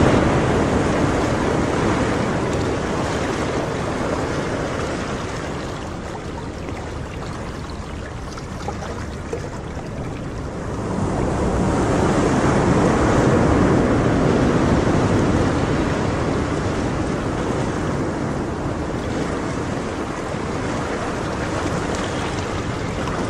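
Water in an aquarium bubbles and hums steadily.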